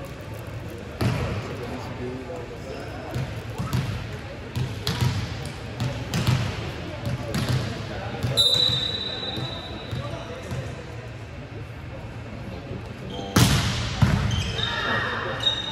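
Volleyballs thump loudly as players strike them in a large echoing hall.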